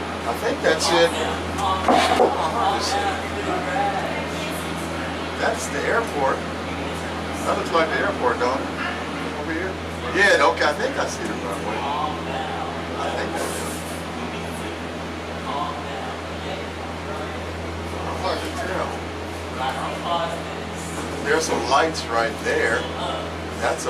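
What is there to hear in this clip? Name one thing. An older man talks calmly nearby.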